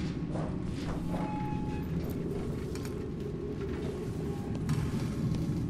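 Footsteps clang on a metal grating.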